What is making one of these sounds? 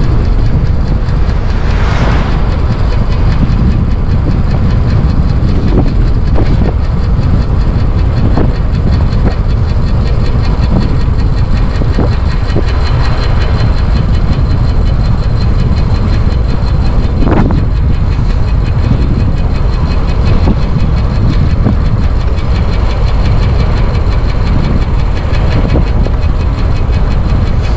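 Strong wind buffets and roars steadily outdoors.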